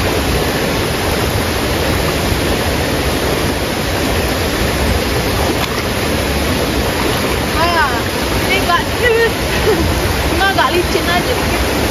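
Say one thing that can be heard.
A stream rushes and burbles over rocks.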